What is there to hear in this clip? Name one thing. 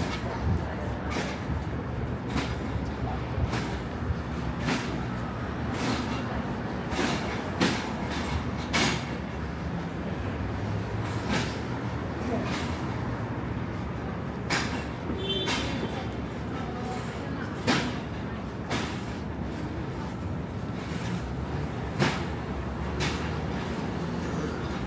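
Footsteps tap steadily on pavement close by.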